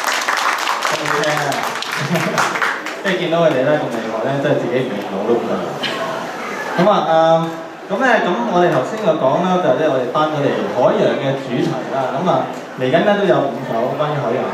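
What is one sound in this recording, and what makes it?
A young man speaks calmly through a microphone over loudspeakers.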